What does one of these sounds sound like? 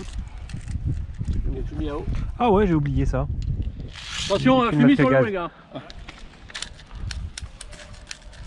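Dry leaves rustle and crunch close by.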